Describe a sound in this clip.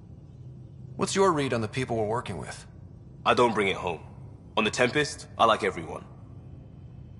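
A young man speaks calmly and closely in conversation.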